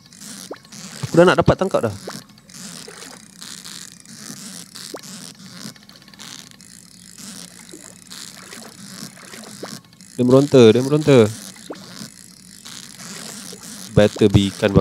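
A fishing reel whirs as a line is reeled in.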